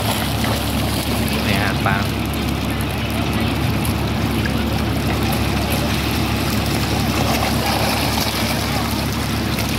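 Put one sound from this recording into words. Many fish splash and thrash at the water's surface.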